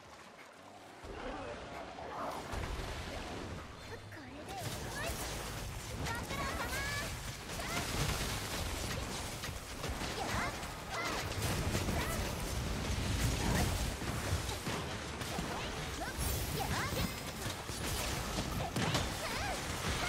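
Weapon blows clash and explode in rapid bursts.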